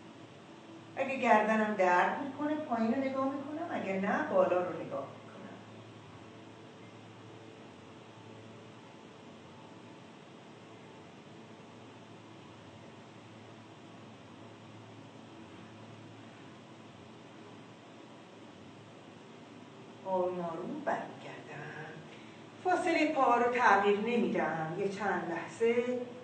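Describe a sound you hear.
An elderly woman speaks calmly and gently, close by.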